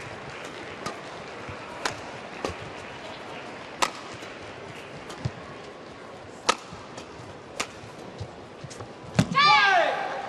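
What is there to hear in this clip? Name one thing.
Rackets strike a shuttlecock in sharp, quick hits.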